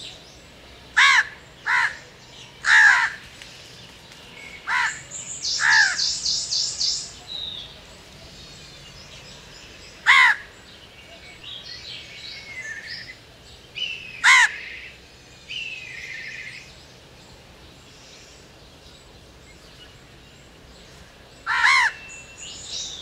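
A crow caws loudly in short harsh bursts.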